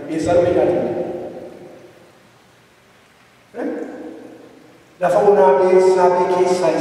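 A man preaches with fervour through a microphone, pausing between phrases, in an echoing room.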